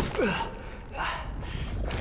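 A young man cries out in pain.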